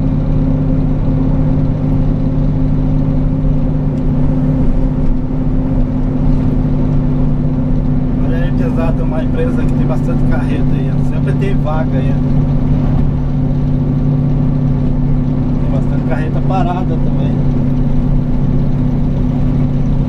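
Tyres roar on an asphalt road.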